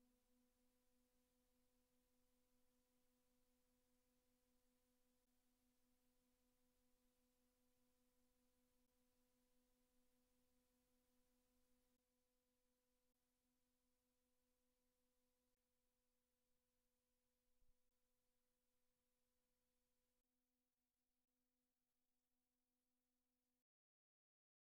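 Steady electronic tones hum together, then cut off abruptly.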